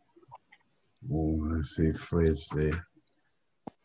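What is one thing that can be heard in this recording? An elderly man speaks with animation over an online call.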